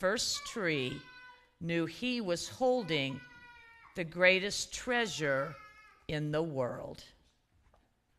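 A woman reads aloud through a microphone in an echoing hall.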